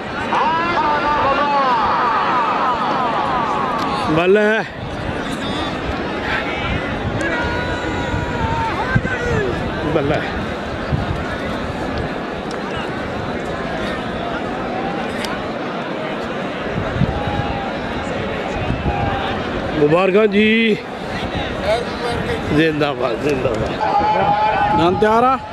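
A large crowd murmurs and shouts outdoors.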